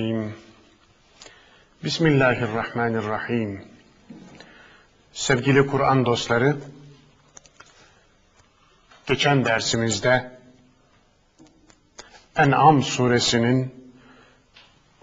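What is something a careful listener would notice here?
A man speaks calmly and clearly into a microphone, in short phrases with pauses.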